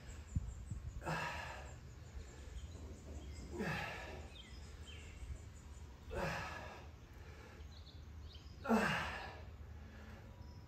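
A woman exhales sharply and rhythmically as she exercises.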